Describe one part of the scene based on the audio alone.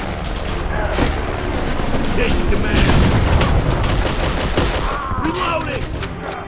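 Gunfire cracks in rapid bursts.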